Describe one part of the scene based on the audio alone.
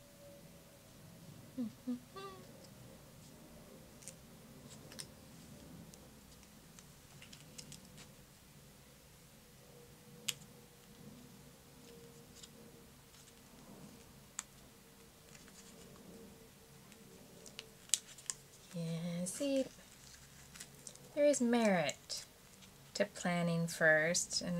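Paper rustles softly as small pieces are handled and pressed down.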